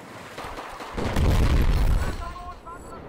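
A heavy explosion booms close by.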